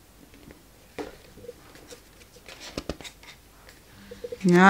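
Sheets of paper rustle and slide as a hand handles them.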